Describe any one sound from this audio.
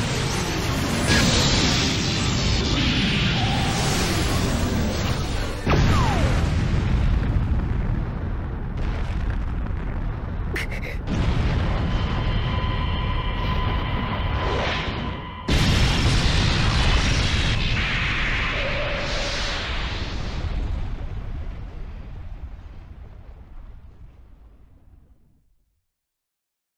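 A huge explosion roars and rumbles, then slowly fades.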